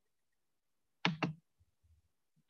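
A young woman speaks briefly and quietly over an online call.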